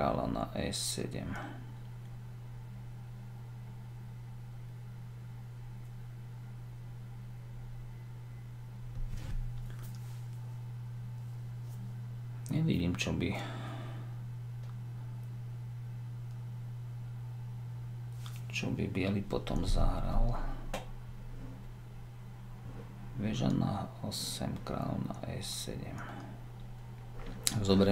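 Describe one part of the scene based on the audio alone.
A middle-aged man speaks calmly and close to a microphone, with long pauses.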